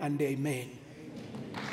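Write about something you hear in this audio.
A man speaks with emphasis into a microphone.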